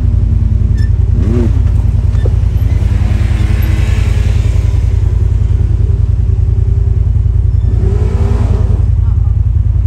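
An off-road vehicle engine revs as it drives past close by.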